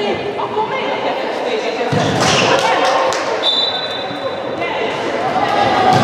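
A handball bounces on a wooden floor.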